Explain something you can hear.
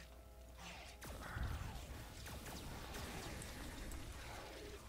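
An energy blast crackles and booms.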